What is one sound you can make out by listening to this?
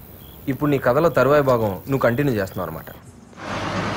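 A young man speaks close by with animation.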